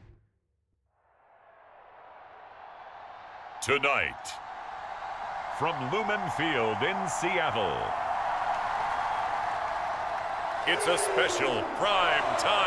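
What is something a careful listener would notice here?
A large stadium crowd roars and cheers, growing louder.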